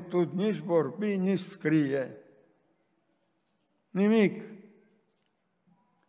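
An elderly man preaches emphatically into a microphone in an echoing hall.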